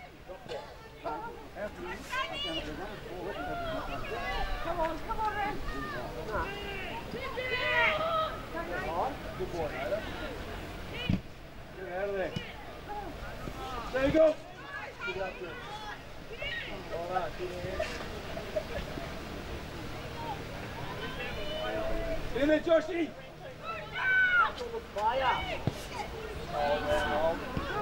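Young players shout and call out to each other across an open field.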